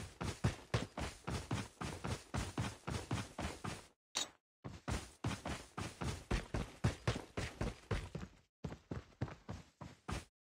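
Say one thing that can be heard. Quick footsteps thud on the ground.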